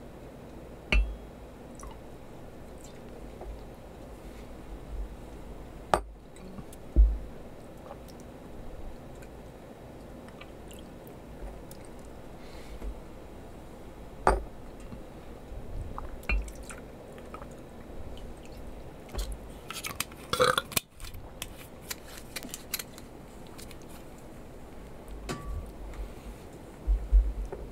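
Glass knocks and clinks against a hard surface.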